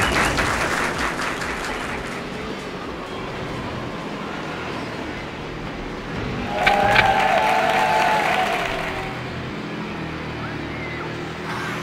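Water splashes and hisses behind a speeding boat.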